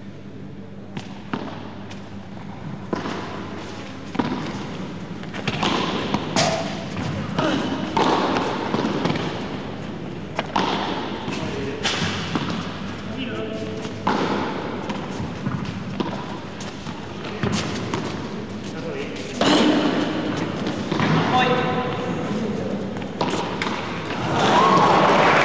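Rackets strike a ball with sharp pops in a large echoing hall.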